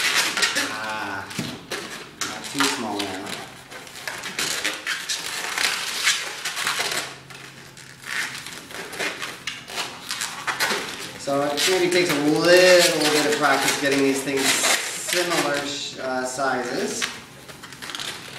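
A rubber balloon squeaks as it is twisted.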